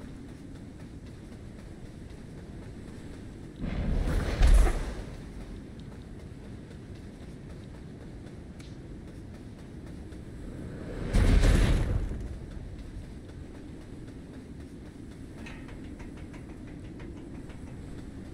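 Wind blows steadily, with loud gusts.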